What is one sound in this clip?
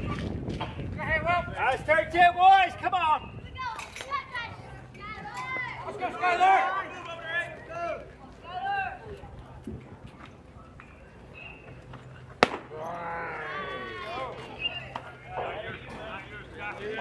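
Young girls chant and cheer loudly outdoors.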